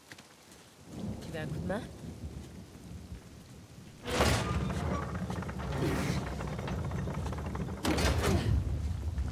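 A heavy stone mechanism grinds and rumbles steadily.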